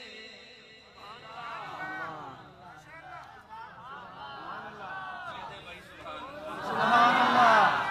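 A young man chants melodically into a microphone, heard through loudspeakers.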